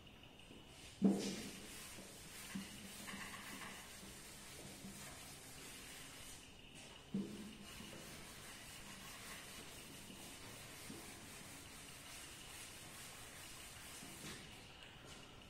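A duster rubs and squeaks across a chalkboard.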